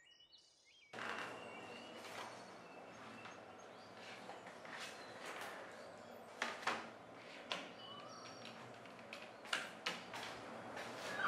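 A computer keyboard clicks as someone types.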